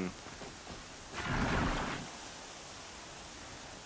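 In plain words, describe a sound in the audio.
A pulley whirs along a rope as someone slides down it.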